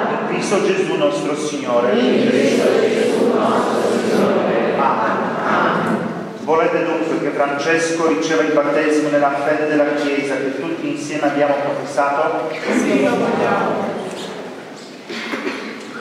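A man reads out prayers aloud in an echoing hall.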